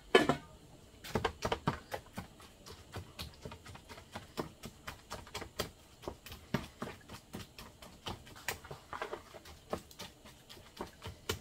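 A wooden spoon scrapes and taps in a plastic bowl as food is mixed.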